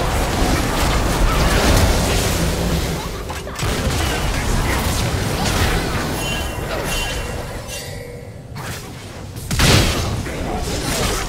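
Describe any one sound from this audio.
Magic spells whoosh and burst during a fast fight.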